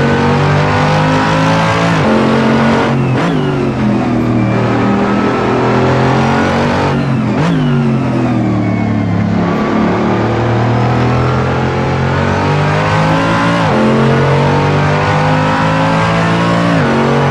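A racing car engine roars loudly, rising and falling in pitch as it revs.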